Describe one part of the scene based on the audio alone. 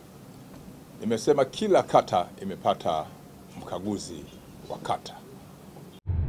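A man speaks calmly and firmly into a nearby microphone.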